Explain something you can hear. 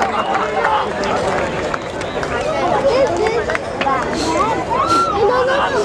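A crowd of men and women chatter over one another outdoors.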